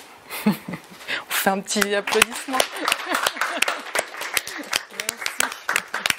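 A woman laughs heartily close by.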